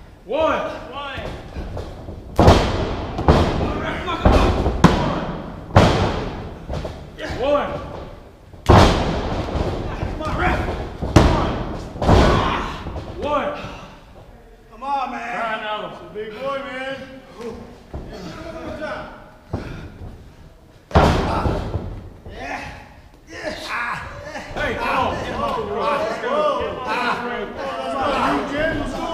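A man shouts and grunts nearby.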